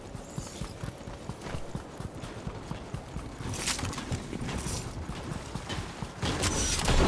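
Running footsteps patter on sand.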